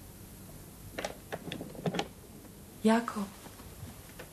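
A metal door lock rattles and clicks.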